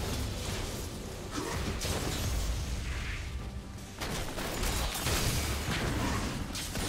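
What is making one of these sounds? Game combat effects whoosh, crackle and clash in quick bursts.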